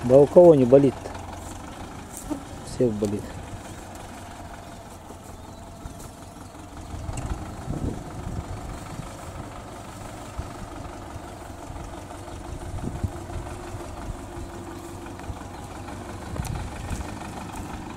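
A tractor engine rumbles steadily in the distance.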